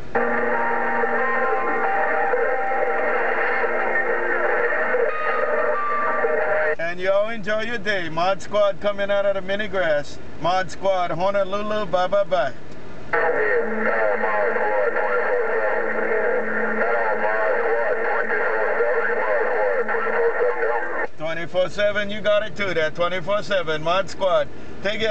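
A radio loudspeaker hisses and crackles with steady static.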